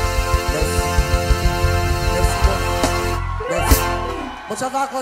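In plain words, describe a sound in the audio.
A live band plays loudly through speakers.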